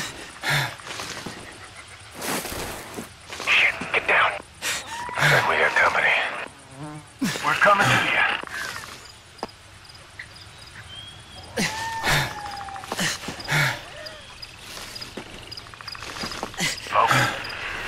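Leafy undergrowth rustles as someone pushes through it.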